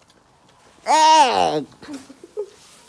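A pig squeals sharply.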